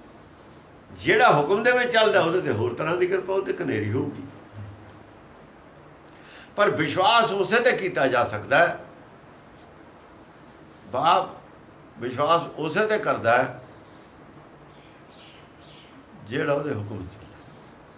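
An elderly man speaks calmly and close by, in bursts with pauses.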